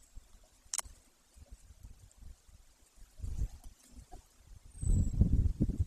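An eagle tears at prey with soft rustling and thumps.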